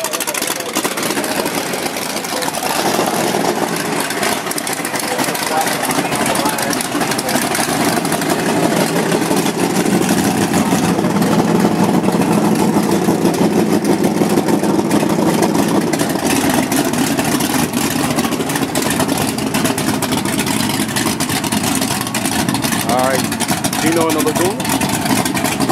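A pickup truck's engine idles with a loud, deep rumble close by.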